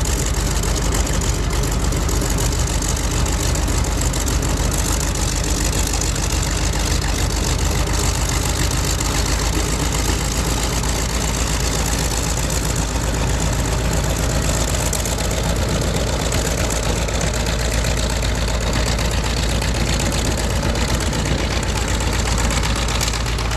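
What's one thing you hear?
A propeller plane's piston engine roars loudly nearby.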